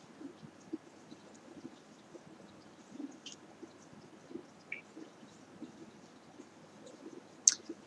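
Knitted fabric rustles softly as it is handled.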